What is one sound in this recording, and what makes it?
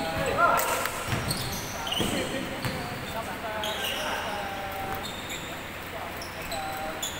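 Young men call out to each other during play.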